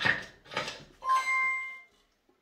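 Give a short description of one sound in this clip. A slot machine chimes a bright electronic tone.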